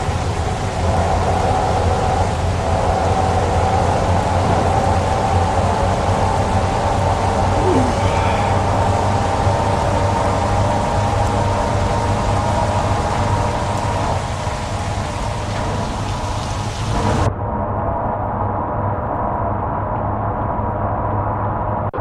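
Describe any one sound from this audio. Rain drums on the road and truck.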